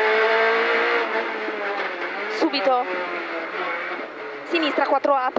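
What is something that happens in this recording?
A rally car engine roars loudly from inside the car, its pitch rising and falling as it shifts.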